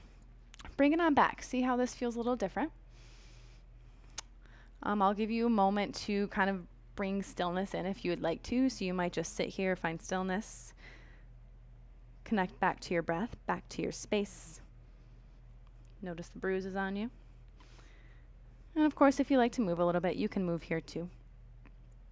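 A young woman speaks calmly and clearly close to a microphone, with pauses.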